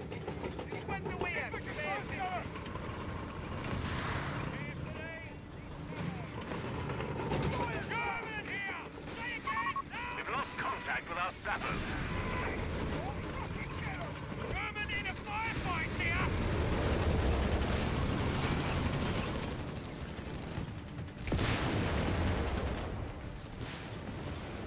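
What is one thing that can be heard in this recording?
Tank engines rumble low and steadily.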